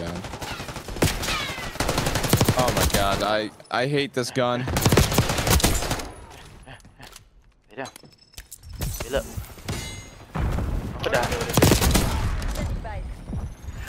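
Rapid bursts of automatic gunfire crack close by.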